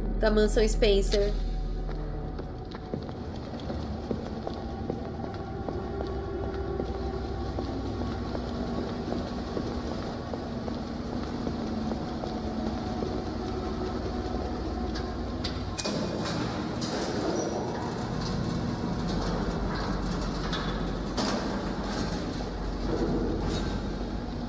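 A low, eerie drone hums steadily.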